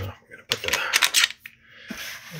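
A metal bit clicks and scrapes as it is pushed into a drill attachment.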